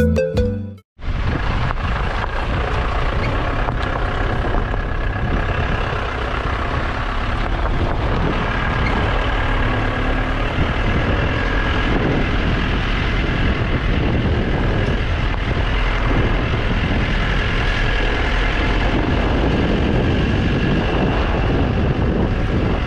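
A vehicle engine rumbles steadily as it drives.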